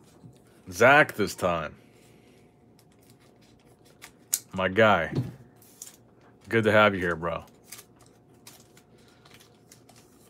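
A foil card pack crinkles as it is handled.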